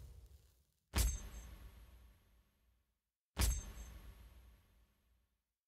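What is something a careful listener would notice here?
A short, ringing musical sting sounds twice, each time fading away.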